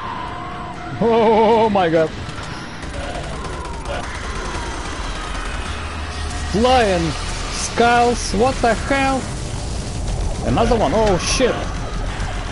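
A monster growls and roars.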